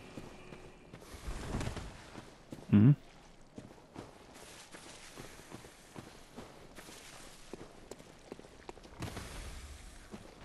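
Footsteps crunch on soft ground.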